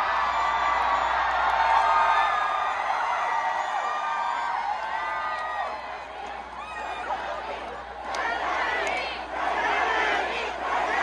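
A large crowd of young people screams and cheers loudly outdoors.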